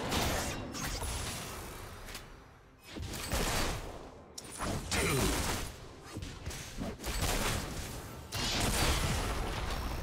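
Game spells crackle and burst in quick, sudden blasts.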